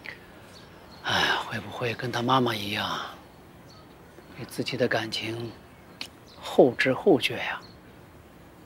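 A middle-aged man speaks calmly and thoughtfully, close by.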